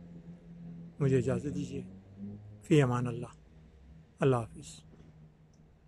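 An elderly man speaks calmly and close by, in short phrases.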